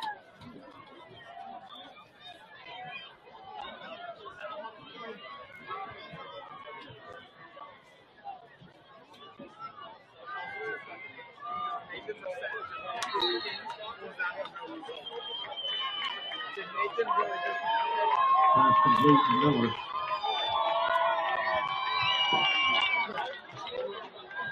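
A crowd cheers and shouts outdoors, growing louder toward the end.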